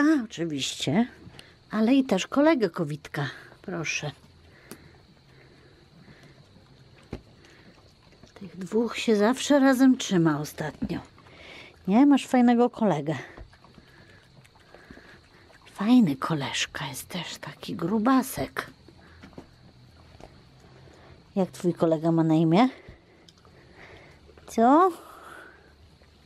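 A woman talks softly and affectionately close by.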